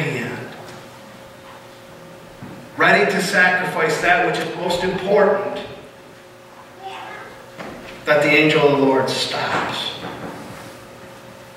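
A man speaks with animation in a room with a slight echo.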